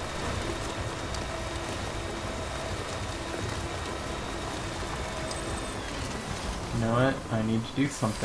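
A vehicle engine rumbles steadily as it drives over rough ground.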